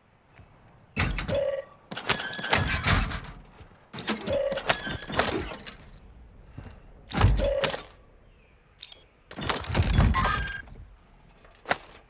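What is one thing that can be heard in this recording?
Metal lockers and crates clank open with rattling bursts.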